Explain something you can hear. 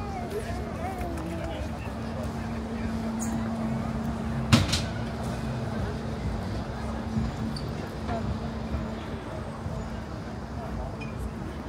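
A busy street murmurs with footsteps and distant voices outdoors.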